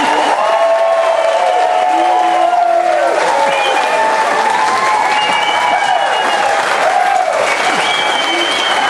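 A crowd of older men and women cheers and sings along loudly.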